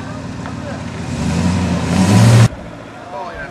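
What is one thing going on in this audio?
A large vehicle's engine roars loudly as it drives right past.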